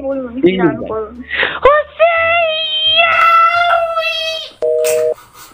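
A young man speaks with animation into a phone.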